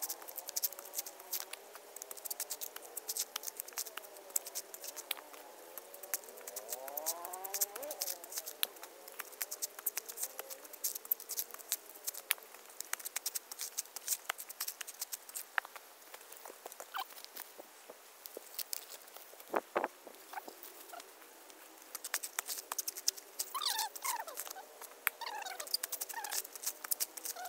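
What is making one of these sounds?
Coconut husk rips and tears as it is pulled apart on a spike.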